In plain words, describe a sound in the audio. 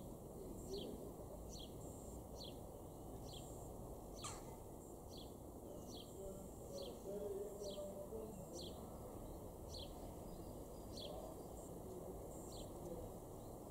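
A jackdaw calls with short, sharp, repeated chirps.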